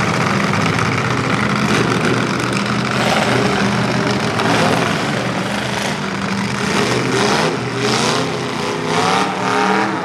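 Cars crunch as they collide.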